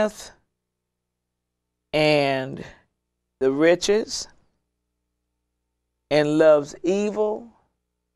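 An elderly woman speaks calmly and slowly into a close microphone, with long pauses.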